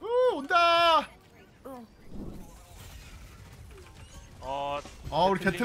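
A man shouts excitedly into a microphone.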